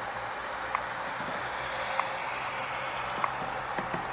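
A van drives past nearby.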